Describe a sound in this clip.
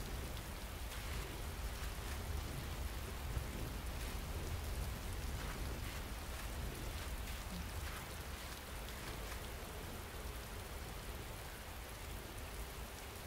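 Footsteps crunch slowly over leaves and dirt.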